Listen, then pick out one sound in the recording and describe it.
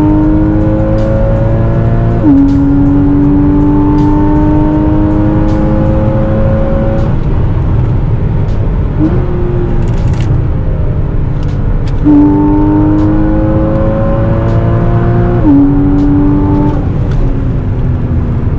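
A car engine roars loudly as it revs up through the gears.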